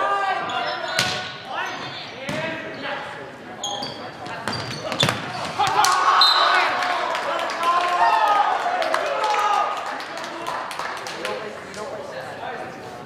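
Young men shout and call out on the court.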